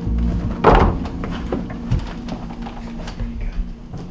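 A wooden chair knocks and creaks as it is moved.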